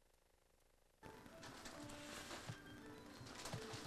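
Wrapping paper crinkles and rustles.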